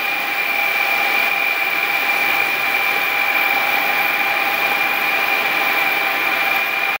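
A drone's propellers spin with a loud, steady buzzing whine.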